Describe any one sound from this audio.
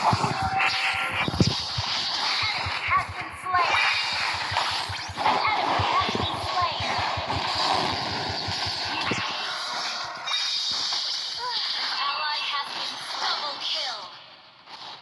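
Game spell blasts and hits crash and clatter in a fast fight.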